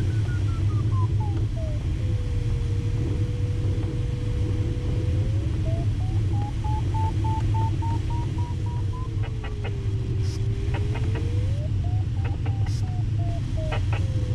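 Wind rushes steadily over a glider's canopy.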